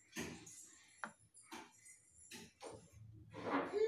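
A knife cuts through bread and taps on a wooden board.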